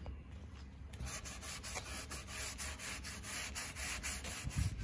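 A cloth rubs back and forth over a wooden board with a soft, rhythmic swishing.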